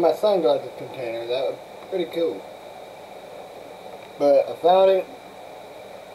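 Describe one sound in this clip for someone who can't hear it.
A young man talks casually, close up.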